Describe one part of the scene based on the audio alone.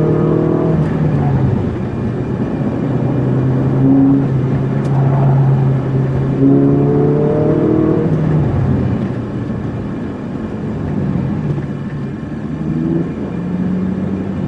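A car engine roars loudly from inside the cabin, rising and falling as the car speeds along.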